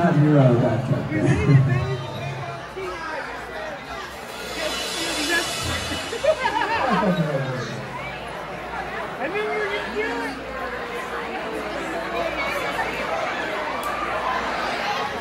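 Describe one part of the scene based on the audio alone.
Electric guitars strum and ring out.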